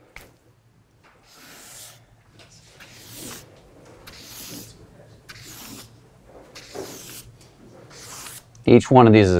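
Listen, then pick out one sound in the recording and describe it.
A marker squeaks across paper in short strokes.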